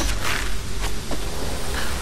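A taut rope creaks as it is pulled.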